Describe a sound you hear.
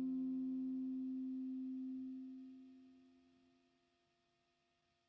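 A guitar chord rings out close by and slowly fades away.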